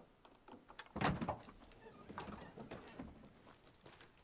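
A car hood creaks open and clunks.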